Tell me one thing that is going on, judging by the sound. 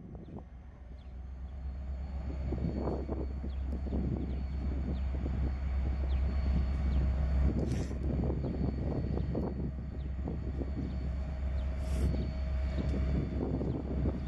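A diesel locomotive engine rumbles steadily as it slowly approaches.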